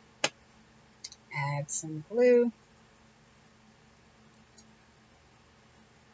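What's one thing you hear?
A glue pen clicks against paper.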